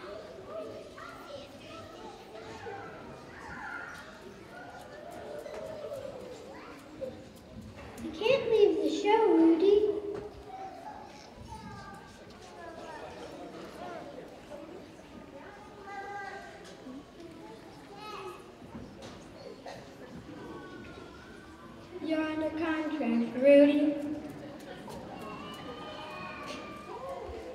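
A group of children's voices murmur and chatter in the background.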